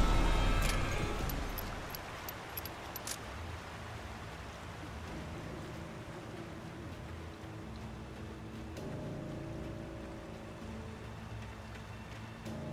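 Wind blows through trees outdoors.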